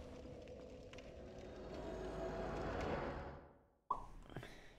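A shimmering magical whoosh swells and then cuts off.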